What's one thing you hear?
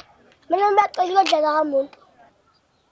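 A young boy asks a question pleadingly, close by.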